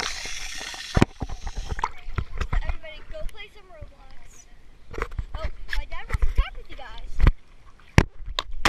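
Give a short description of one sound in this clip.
Water splashes close by.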